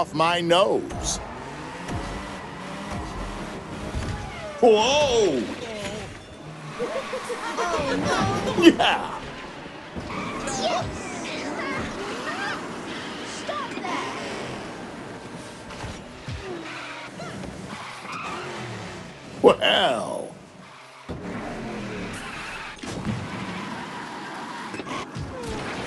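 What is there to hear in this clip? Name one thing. Kart engines whine and buzz as they race.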